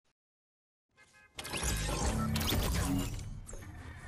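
A video game's sound effects burst out loudly.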